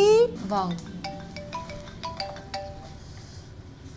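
Phone keys beep as a young woman taps them.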